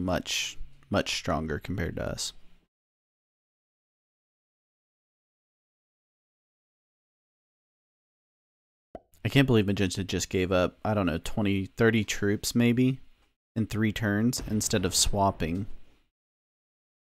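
A man talks with animation into a close microphone.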